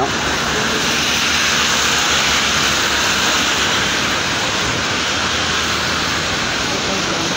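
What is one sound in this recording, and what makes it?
Steady rain falls and splashes on wet pavement outdoors.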